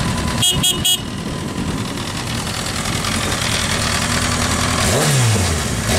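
An inline-four sport bike idles.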